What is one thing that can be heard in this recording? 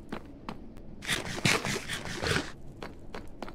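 Food is munched with quick crunchy bites.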